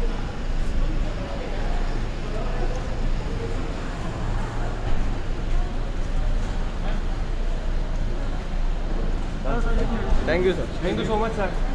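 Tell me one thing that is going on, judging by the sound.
People chatter and murmur in a crowd nearby.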